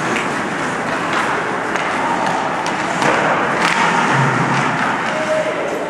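Ice skates scrape and carve across ice in an echoing indoor rink.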